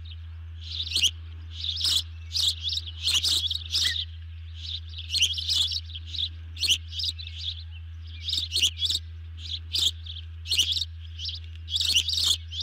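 An osprey gives repeated high, sharp chirping calls close by.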